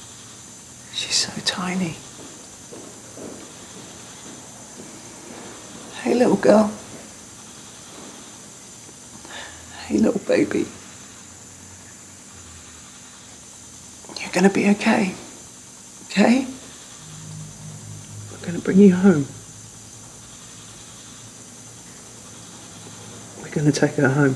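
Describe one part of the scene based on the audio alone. A young woman speaks softly close by.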